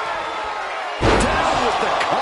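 A heavy thud of a body slamming onto a wrestling ring mat.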